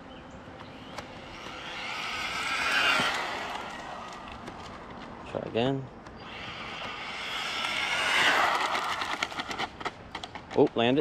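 A small electric RC car's brushless motor whines as the car races past at speed on asphalt.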